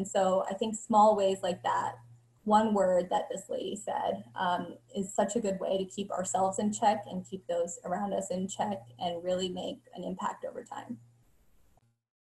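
A young woman speaks calmly and steadily over an online call.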